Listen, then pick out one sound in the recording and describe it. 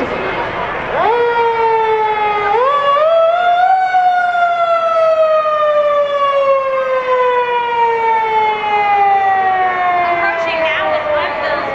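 A fire engine siren wails loudly nearby, then slowly winds down.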